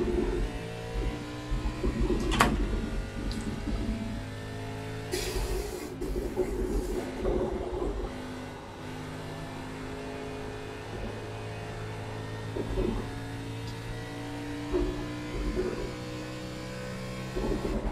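A race car engine drones steadily, rising and falling in pitch.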